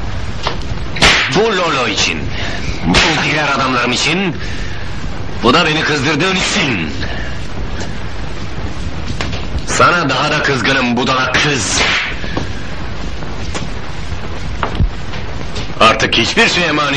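A middle-aged man speaks firmly, in short bursts.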